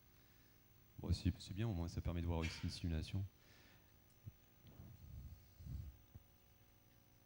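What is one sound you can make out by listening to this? A man speaks through a microphone over loudspeakers in a large hall.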